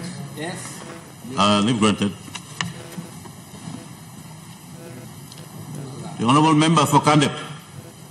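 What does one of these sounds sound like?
A man speaks formally into a microphone.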